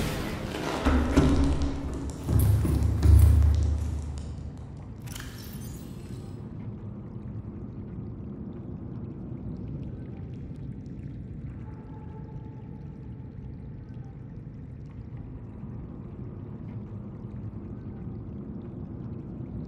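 A low electric hum drones steadily.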